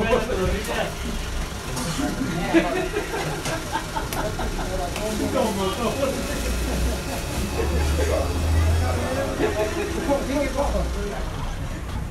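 Dishes and cutlery clink softly.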